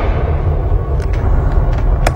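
A gun fires a few quick shots.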